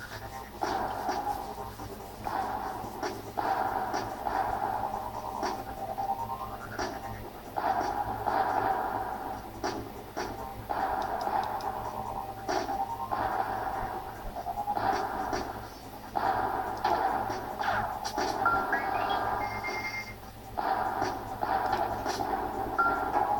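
Video game music plays through a small speaker.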